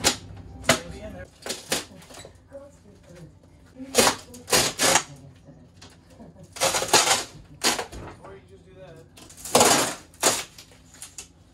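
A panel creaks and scrapes as it is pried off a wall.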